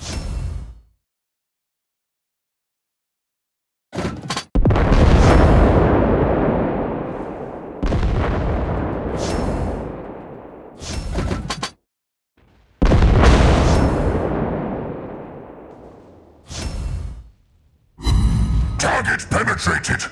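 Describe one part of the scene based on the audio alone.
Heavy naval guns fire with deep booms that rumble away.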